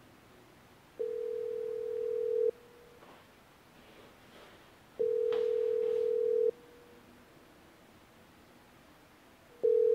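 A phone's ringing tone sounds in long, steady beeps.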